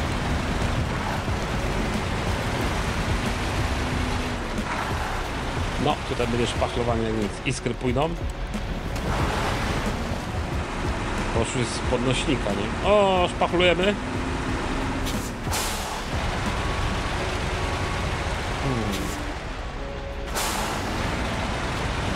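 A heavy truck engine rumbles and labours steadily.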